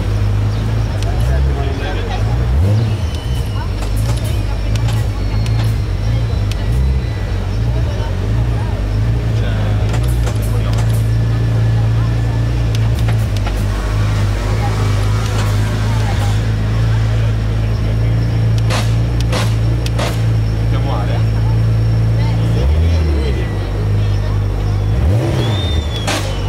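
A race car engine revs sharply and drops back, several times.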